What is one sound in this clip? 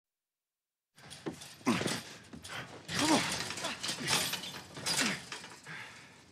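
A man pleads in a strained, breathless voice.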